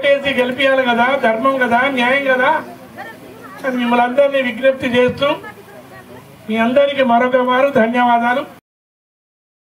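A man speaks loudly and forcefully into a microphone, heard through a loudspeaker outdoors.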